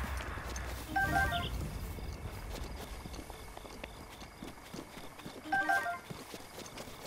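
Short chiming tones ring out as items are picked up.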